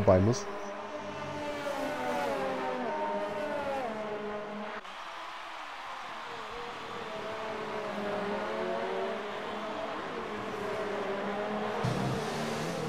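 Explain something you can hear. Racing car engines whine at high revs, shifting pitch through the gears.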